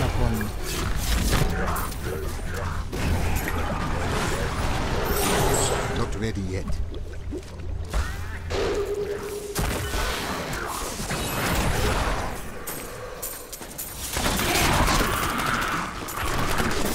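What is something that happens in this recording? Game combat effects crackle and blast in quick succession.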